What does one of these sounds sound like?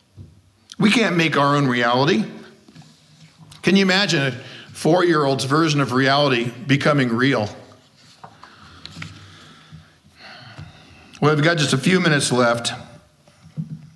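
A middle-aged man speaks steadily into a microphone, with pauses between phrases.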